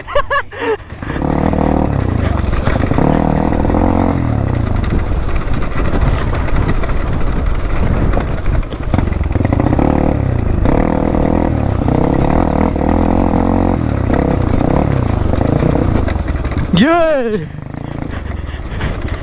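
A motorbike engine drones close by, revving up and down.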